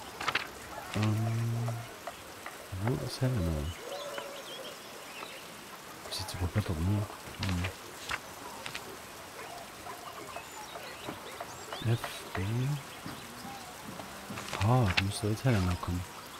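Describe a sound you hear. A man talks calmly into a close microphone, in short phrases.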